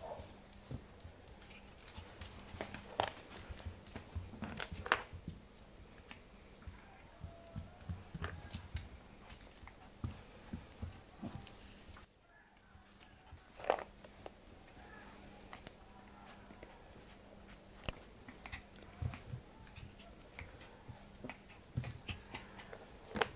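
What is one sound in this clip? A puppy's claws tap and scrabble on a hard floor.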